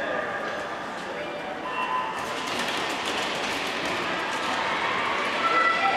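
Skate blades scrape across the ice as skaters push off.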